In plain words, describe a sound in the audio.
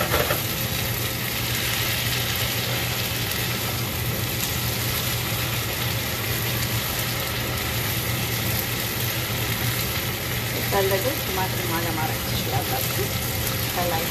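A gas burner hisses and roars softly.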